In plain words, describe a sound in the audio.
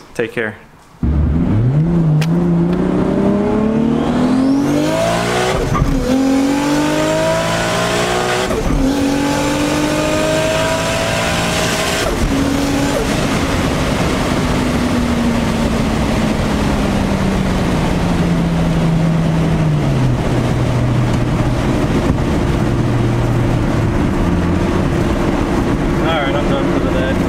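A car engine roars loudly as it accelerates, rising in pitch through several gear changes.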